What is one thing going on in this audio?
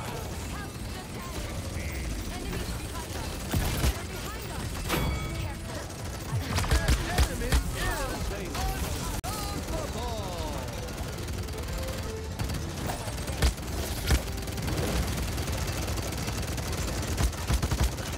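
Gunfire and fiery blasts boom again and again.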